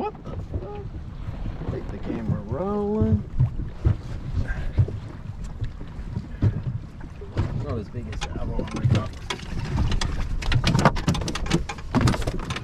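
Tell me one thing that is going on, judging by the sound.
A fishing reel ratchets and clicks as line is wound in.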